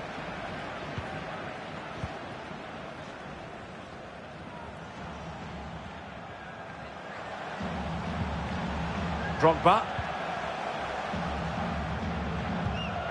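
A stadium crowd murmurs steadily, growing louder partway through.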